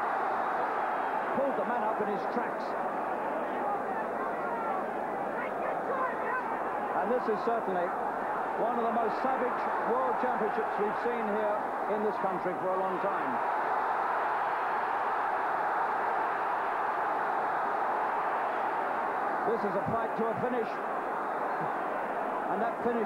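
A crowd murmurs and cheers throughout a large echoing arena.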